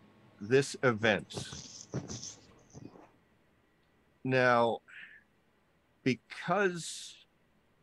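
A man speaks with animation through a microphone on an online call.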